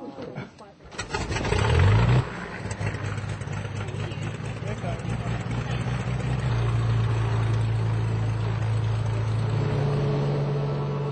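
An aircraft engine starts up and roars steadily, rising in pitch.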